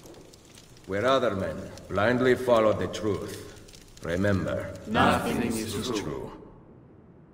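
A man speaks slowly and solemnly, close up.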